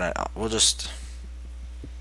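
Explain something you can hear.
A pickaxe chips repeatedly at stone blocks.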